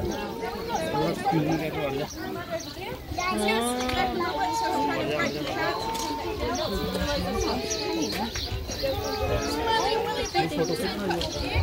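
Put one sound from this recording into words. A woman speaks calmly and clearly to a group outdoors.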